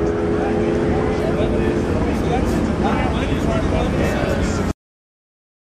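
Race cars roar down a drag strip in the distance.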